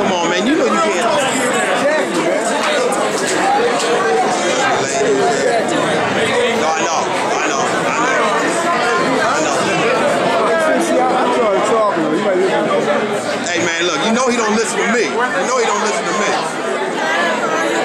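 A crowd of men and women chatter loudly all around, in an echoing hall.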